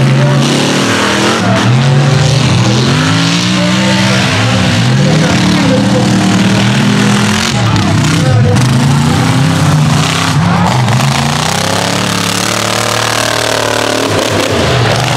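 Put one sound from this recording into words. A loud off-road truck engine roars and revs up and down.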